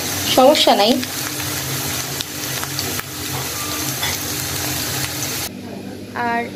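Oil sizzles and crackles as potatoes fry.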